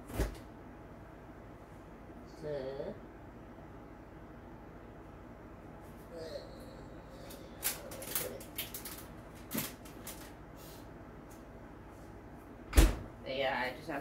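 A fridge door opens and shuts.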